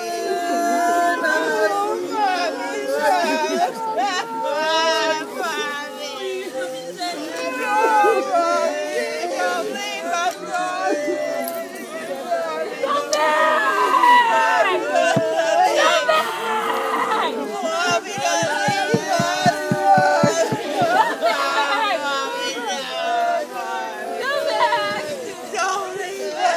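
A crowd of men and women sings together slowly outdoors.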